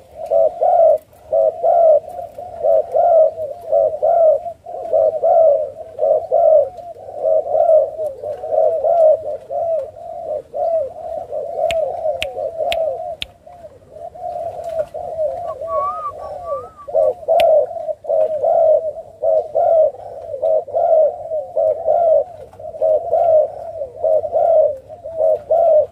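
A dove coos rapidly and repeatedly, close by.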